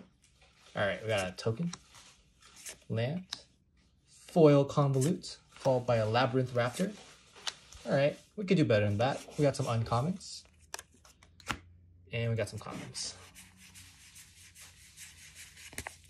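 Playing cards slide and flick against each other.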